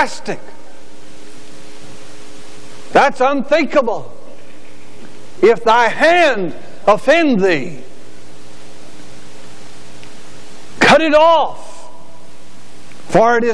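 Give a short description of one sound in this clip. A middle-aged man speaks emphatically through a microphone in short bursts, with pauses between phrases.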